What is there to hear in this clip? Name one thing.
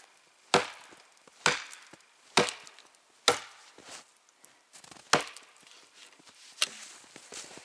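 An axe chops into a tree trunk with sharp, ringing blows.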